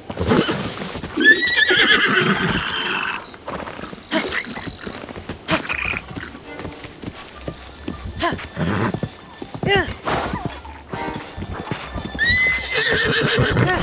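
Horse hooves thud on soft ground.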